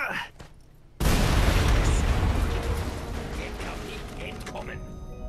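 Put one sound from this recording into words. A loud explosion booms and rumbles, then slowly fades.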